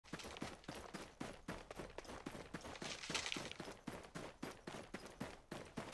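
Quick, even footsteps thud through grass.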